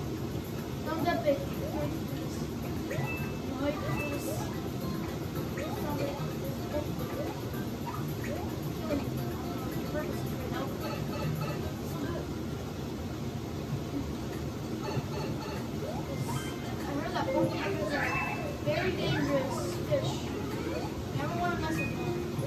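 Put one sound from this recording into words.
Short electronic game sound effects blip and chirp through television speakers.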